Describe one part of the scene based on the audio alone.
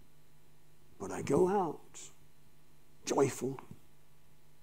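A middle-aged man speaks with emphasis into a microphone.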